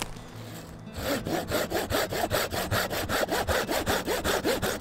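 A hand saw cuts rapidly back and forth through a small tree trunk.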